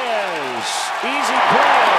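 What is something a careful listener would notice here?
A large crowd cheers louder and louder.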